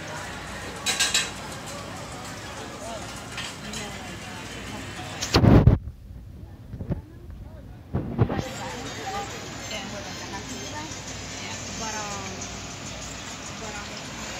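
Men and women chat quietly in the background, outdoors.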